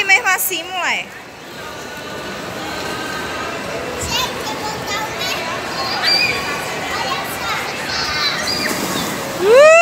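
Plastic balls rustle and clatter as a child wades through them.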